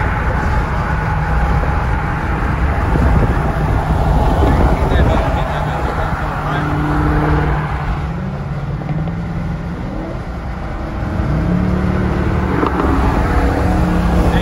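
A powerful car engine roars close by and revs up.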